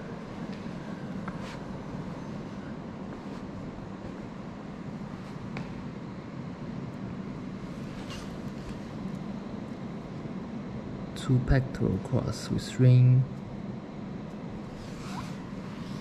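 A person walks with soft footsteps.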